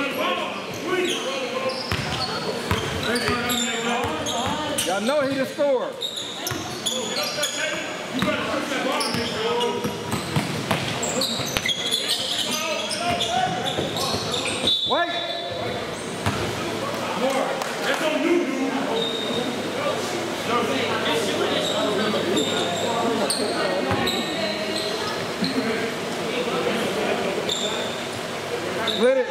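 Sneakers squeak on a wooden court in a large echoing gym.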